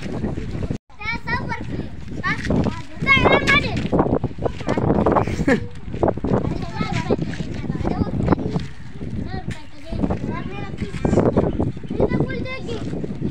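Boys answer in high young voices.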